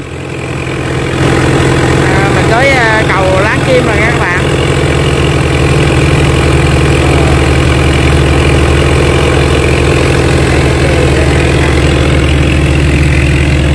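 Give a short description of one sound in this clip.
A boat engine drones steadily close by.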